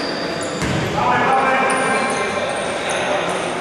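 Men call out to each other across a large echoing hall.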